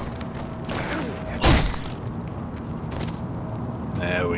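Heavy punches thud against a body.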